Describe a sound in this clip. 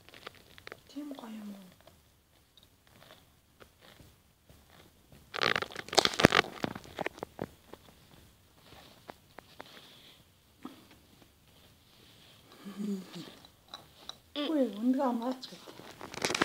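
A little girl hums and makes short vocal sounds close by.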